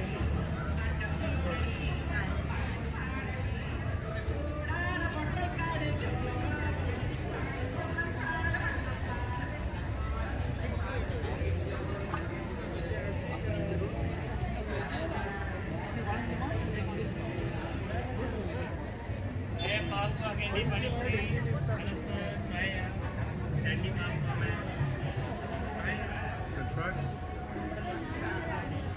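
Voices of men and women chatter in a busy street market.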